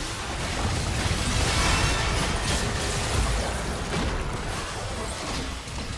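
Game spell effects whoosh and crackle in a hectic fight.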